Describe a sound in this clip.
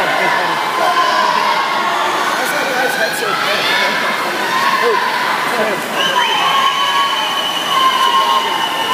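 Swimmers splash through the water doing backstroke.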